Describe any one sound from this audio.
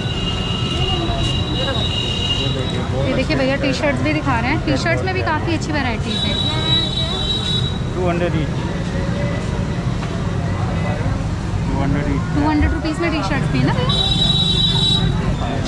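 A busy street hums steadily in the background.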